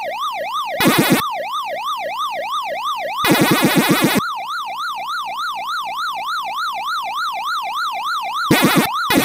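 A retro arcade game makes rapid buzzing chomping bleeps in bursts.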